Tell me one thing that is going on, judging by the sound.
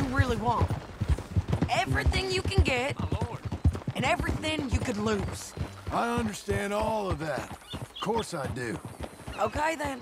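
Horse hooves clop on a dirt road.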